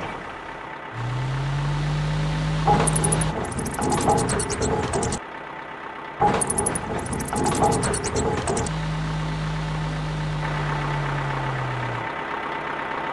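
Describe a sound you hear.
A crane's motor whirs as it hoists a load.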